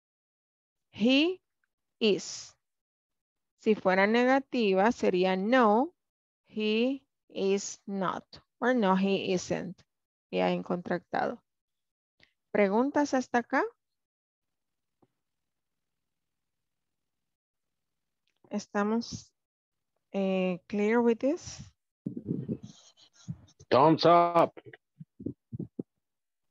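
A woman speaks clearly into a headset microphone, heard through an online call.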